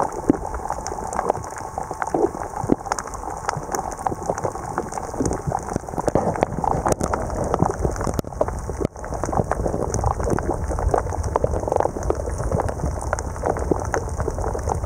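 Faint crackling and clicking comes from the reef underwater.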